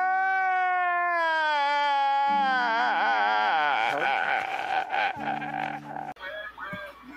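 A man wails loudly, crying in distress.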